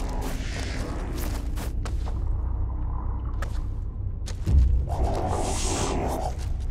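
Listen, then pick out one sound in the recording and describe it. Footsteps crunch over rubble and loose debris.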